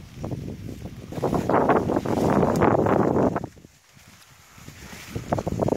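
Dry corn stalks rustle and crackle in gusty wind outdoors.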